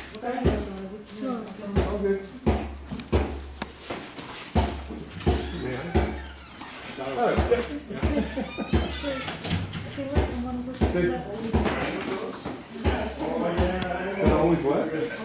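Gloved punches thud sharply on padded mitts.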